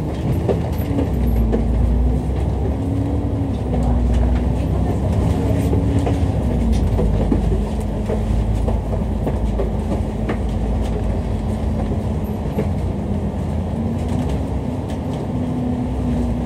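A bus engine rumbles and hums steadily, its pitch shifting as it changes speed.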